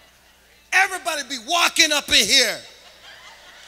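A man speaks loudly and animatedly into a microphone.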